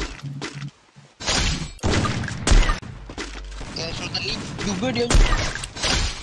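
Sniper rifle shots crack in a video game.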